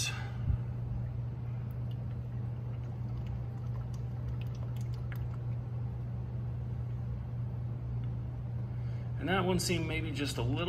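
Oil glugs and trickles from a plastic bottle into a funnel.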